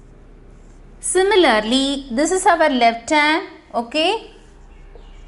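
A woman speaks clearly and calmly through a microphone.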